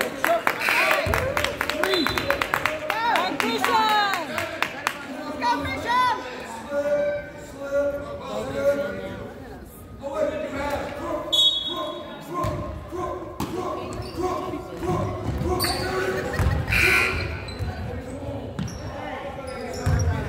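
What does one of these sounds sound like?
Young players call out and shout across an echoing gym.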